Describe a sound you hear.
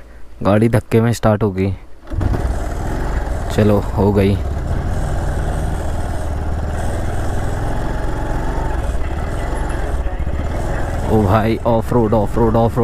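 A motorcycle engine rumbles steadily at low speed.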